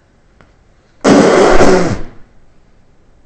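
A man exhales a long breath of vapour.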